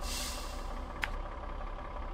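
A menu selection clicks once.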